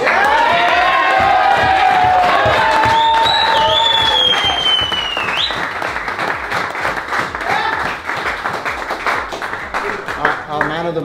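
A group of men clap their hands in rhythm.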